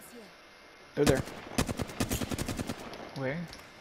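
Gunshots fire in a quick burst.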